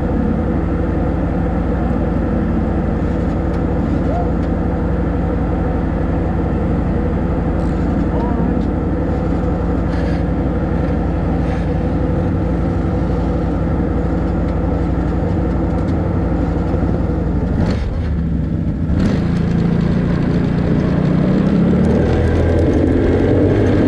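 A quad bike engine idles steadily nearby.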